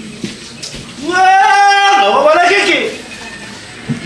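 A man calls out in a long, loud, drawn-out cry.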